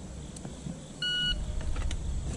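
A shot timer beeps once.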